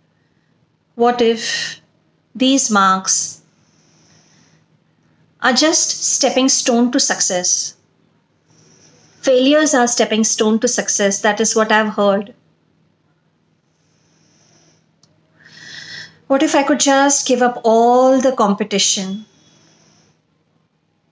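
A woman speaks calmly and clearly, close to a microphone, in short bursts with pauses.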